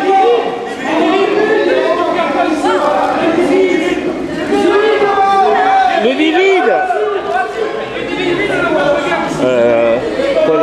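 A crowd of people chatters in a large, echoing hall.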